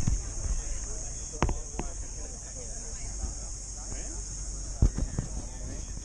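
A crowd of people chatter outdoors in the background.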